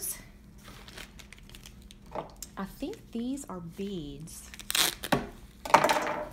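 Cardboard rustles as items are moved in a box.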